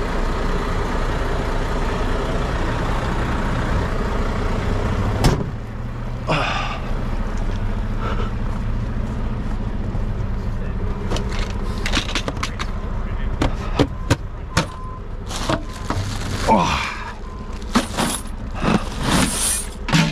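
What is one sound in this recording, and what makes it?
A large truck engine idles with a steady low rumble.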